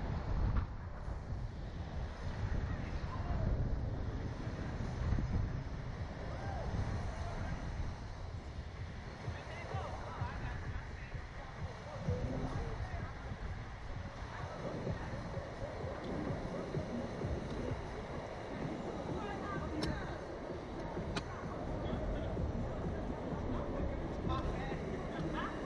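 Wind rushes loudly past the microphone outdoors.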